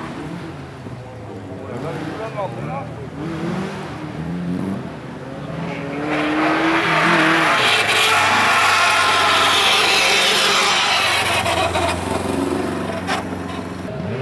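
Tyres skid and spin on loose gravel.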